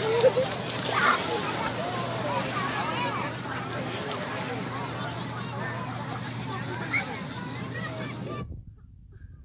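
A crowd of people chatters and shouts outdoors at a distance.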